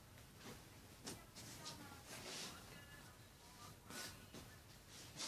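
Fabric rustles.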